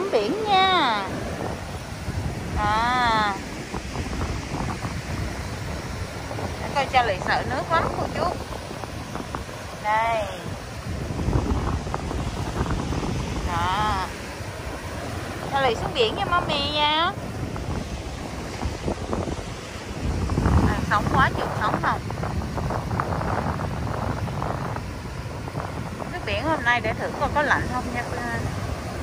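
Waves wash onto a sandy shore.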